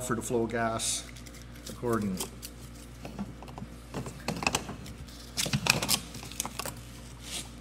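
A metal fitting clicks and scrapes as it is fitted into a socket.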